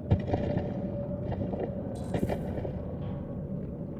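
A body drags across loose rubble.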